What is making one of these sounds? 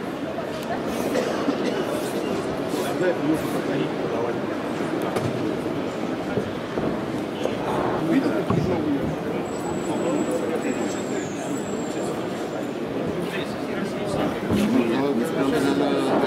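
A crowd of people chatters steadily in a large indoor hall.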